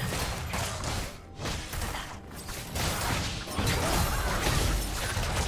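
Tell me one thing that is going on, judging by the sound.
Spell effects crackle and blast during a video game battle.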